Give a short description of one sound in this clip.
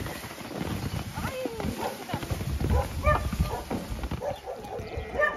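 Women talk with each other nearby, outdoors.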